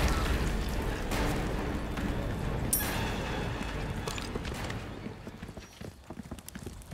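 Footsteps run over wet stone.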